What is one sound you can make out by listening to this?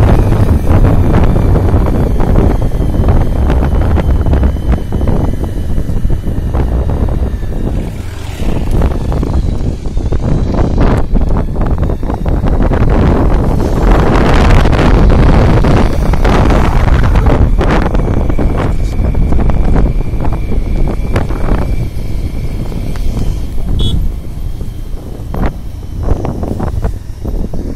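Wind roars and buffets loudly against a microphone on a moving motorbike.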